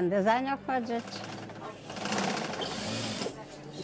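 A sewing machine runs, its needle tapping rapidly.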